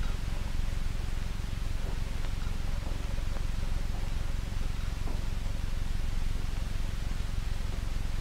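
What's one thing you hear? Slow footsteps walk across a hard floor.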